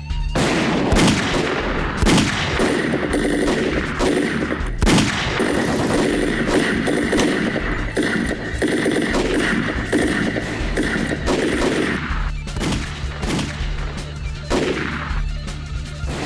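Pistol shots ring out, loud and sharp.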